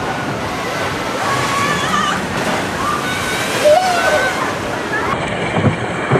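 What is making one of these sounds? Water splashes loudly as a boat plunges down a flume.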